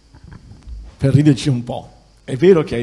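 A man speaks into a microphone in a room.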